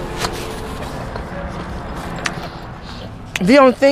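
A woman chews food with her mouth closed.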